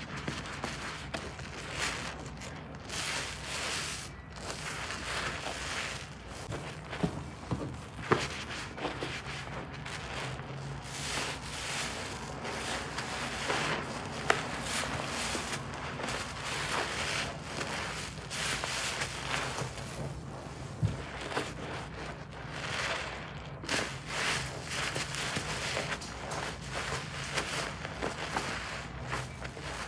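Hands squeeze a soapy sponge in a basin of sudsy water, the thick foam squelching and crackling.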